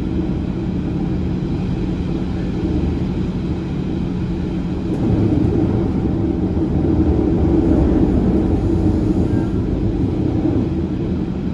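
A passing train roars by close alongside.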